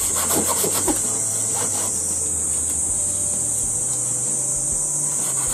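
A hand saw cuts through wood in short rasping strokes.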